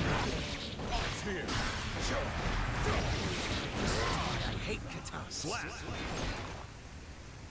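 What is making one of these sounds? Heavy blows strike with sharp impacts.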